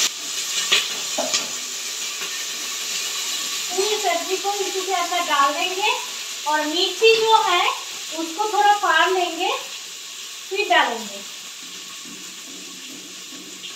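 Steam hisses softly from a pressure cooker.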